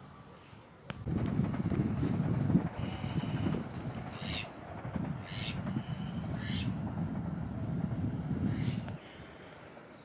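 Wind gusts loudly outdoors.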